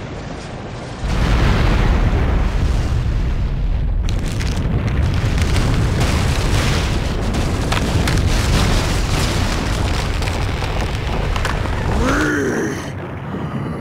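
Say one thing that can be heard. Fire roars with a deep, heavy rumble.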